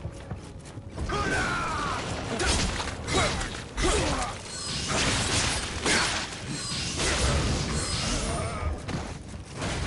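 A sword slashes and clashes in a fight.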